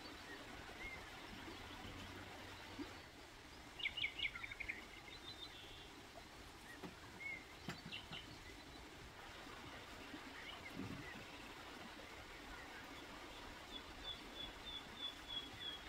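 Hot water trickles from a tap into a cup.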